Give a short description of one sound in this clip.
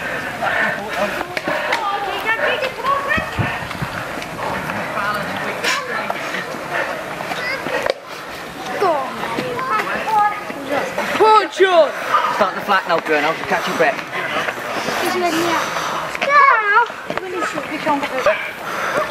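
A crowd of spectators cheers and shouts encouragement outdoors.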